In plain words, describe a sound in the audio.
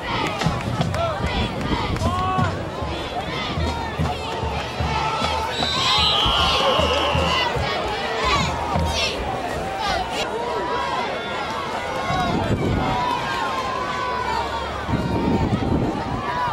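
A crowd of spectators shouts and cheers outdoors.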